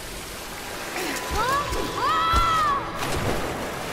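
A young woman cries out while falling.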